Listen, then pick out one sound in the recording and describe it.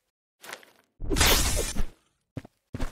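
A fiery blast whooshes and bursts.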